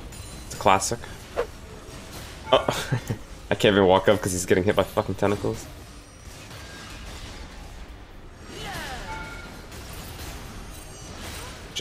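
Weapons clash and strike.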